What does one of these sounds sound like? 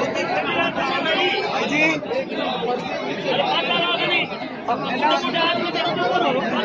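A large outdoor crowd murmurs and chatters loudly.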